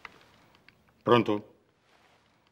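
A man speaks briefly into a telephone.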